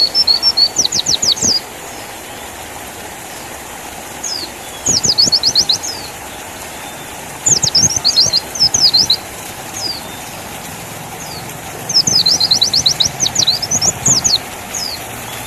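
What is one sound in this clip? A small bird sings in loud, rapid bursts of high chirps and trills, close by.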